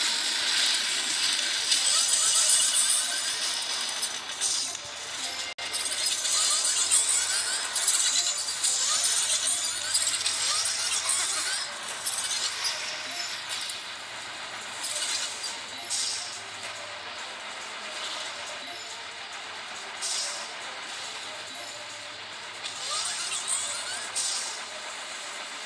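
Explosions boom repeatedly in a video game battle.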